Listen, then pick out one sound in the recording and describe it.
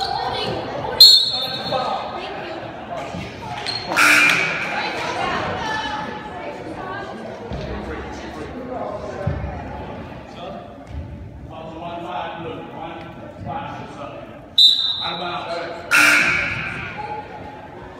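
A referee's whistle blows shrilly in a large echoing gym.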